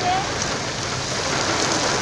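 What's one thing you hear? A waterfall rushes nearby.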